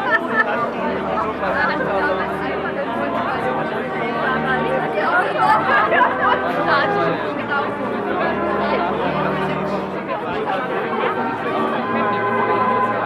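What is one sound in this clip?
A crowd of men and women chatters outdoors close by.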